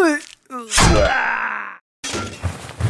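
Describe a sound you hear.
A sword slashes and strikes with a sharp metallic ring.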